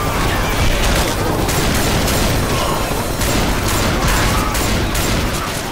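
Zombies growl and snarl.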